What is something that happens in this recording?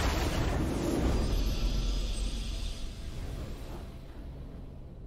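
A triumphant fanfare swells loudly and then fades away.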